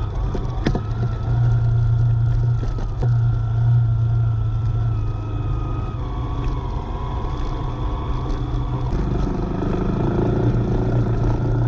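A motorbike engine hums steadily at low speed.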